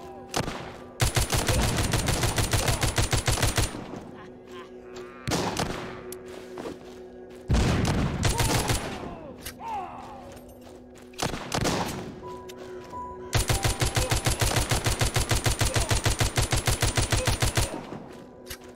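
A rapid burst of automatic gunfire rattles.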